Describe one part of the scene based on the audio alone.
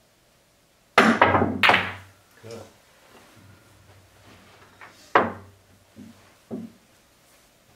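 Billiard balls clack against each other and roll across the table.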